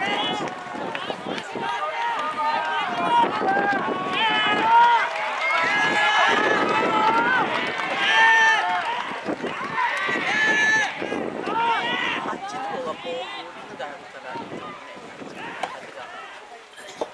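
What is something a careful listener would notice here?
A crowd of spectators cheers and calls out outdoors.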